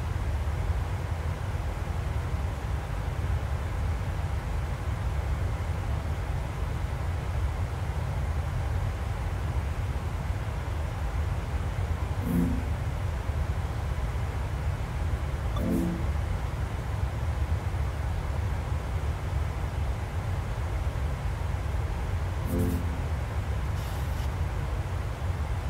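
Jet engines and rushing air rumble steadily and deeply in flight.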